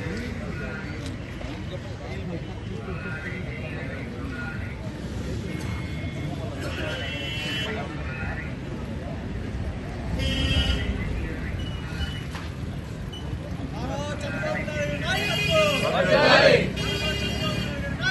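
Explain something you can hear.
A man speaks loudly outdoors.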